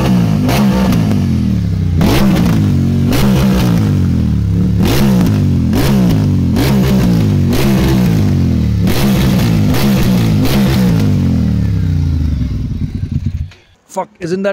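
A motorcycle engine revs hard over and over.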